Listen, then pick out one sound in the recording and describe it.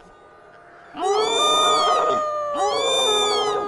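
A cartoon creature lets out a loud, warbling musical call.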